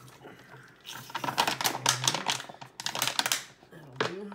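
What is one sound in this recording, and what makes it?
A plastic bottle crinkles and rattles in someone's hands.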